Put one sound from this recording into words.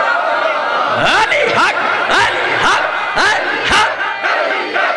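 A man chants in a rising, wailing voice through a loudspeaker.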